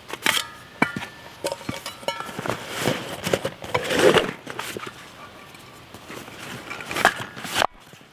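A metal flask knocks against a backpack.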